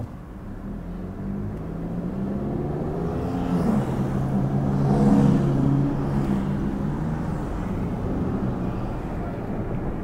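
A car engine revs up steadily as the car pulls away.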